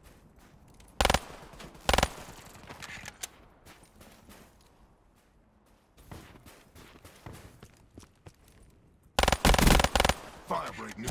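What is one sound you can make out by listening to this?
An automatic rifle fires short bursts.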